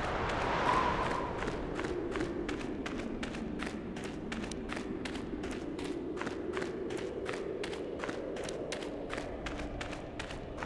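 Footsteps tap steadily on a stone path.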